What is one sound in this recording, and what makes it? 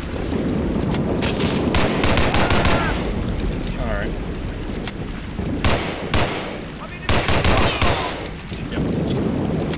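A pistol is reloaded with metallic clicks.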